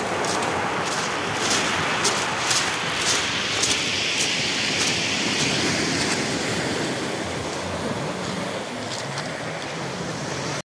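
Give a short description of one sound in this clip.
Waves wash over pebbles and break on the shore.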